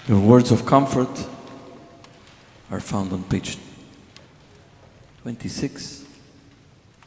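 A man chants loudly through a microphone in a large echoing hall, in short bursts.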